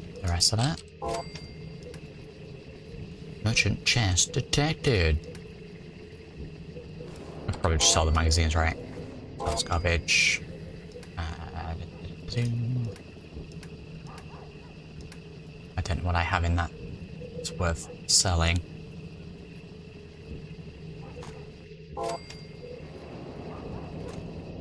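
Short menu clicks and chimes sound now and then.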